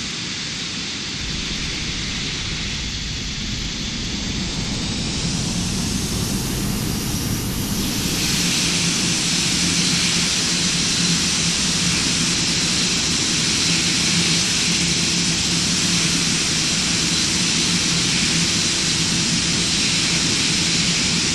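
Jet engines roar steadily with a high whine, growing louder.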